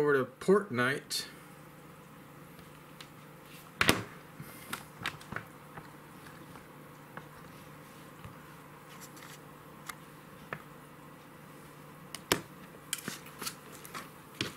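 Fingers tap and handle a phone.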